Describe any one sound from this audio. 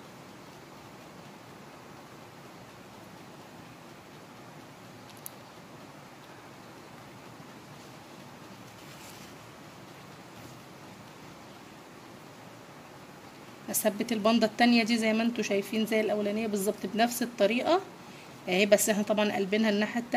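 A needle and thread pull softly through fabric.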